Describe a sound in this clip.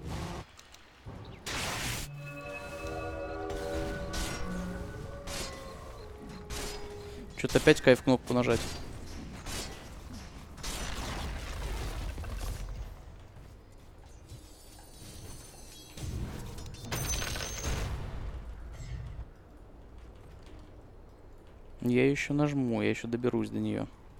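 Fantasy game battle effects clash, crackle and boom.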